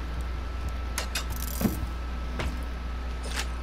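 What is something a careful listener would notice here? A wooden chest lid creaks and thumps open.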